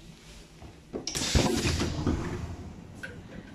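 Train doors hiss and slide open.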